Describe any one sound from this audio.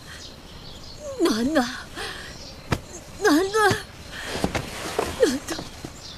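A woman sobs and cries out in pain close by.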